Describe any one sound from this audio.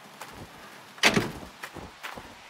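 A truck tailgate slams shut with a loud bang.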